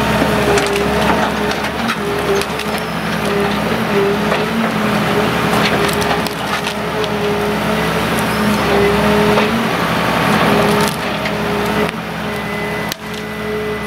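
A diesel engine hums and whines steadily close by.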